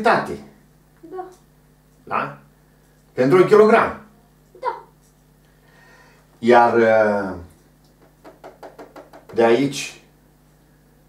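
An older man speaks calmly and clearly into a close microphone, in short phrases with pauses.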